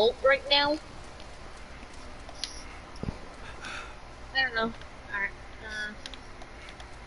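A young man talks in short bursts through a microphone.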